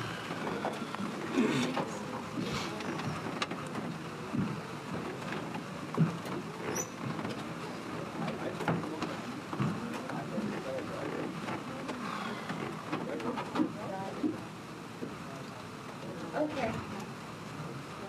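A crowd of adults murmurs and chatters nearby.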